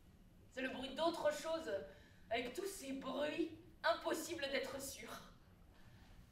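A woman speaks with animation and laughs, close by.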